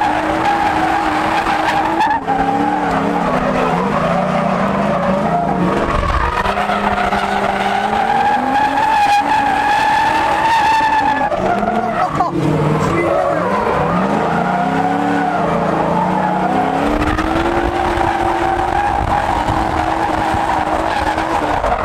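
Tyres squeal and screech on pavement.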